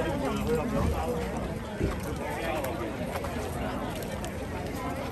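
A crowd of people chatter outdoors nearby.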